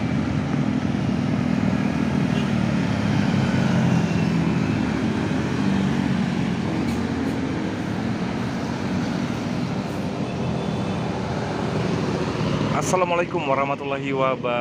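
Buses with deep diesel engines roll past close by.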